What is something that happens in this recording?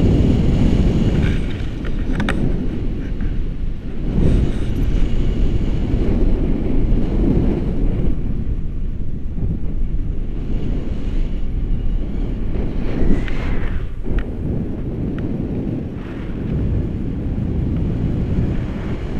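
Strong wind roars loudly against a microphone outdoors.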